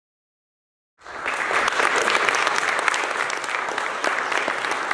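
An audience claps and applauds loudly in a large hall.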